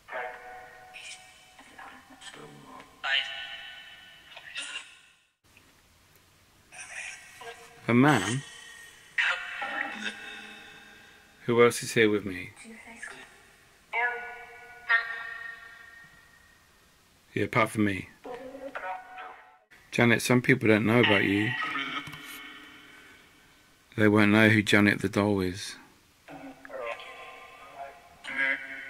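A small speaker plays short, garbled, warbling bursts of sound with pauses between them.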